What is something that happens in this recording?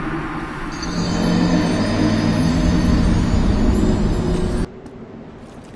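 A deep, loud droning tone swells and then cuts off abruptly.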